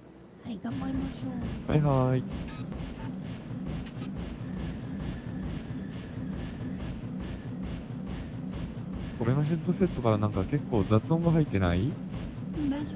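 A heavy walking machine stomps with steady, thudding metal footsteps.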